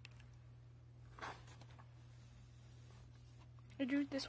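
A sketchbook page rustles as it is turned.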